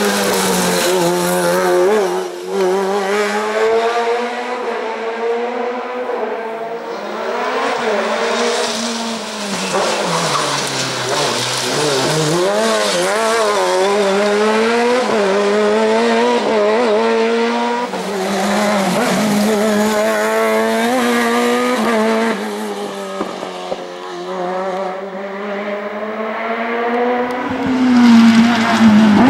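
A racing car engine screams loudly, revving up and down as it shifts gears.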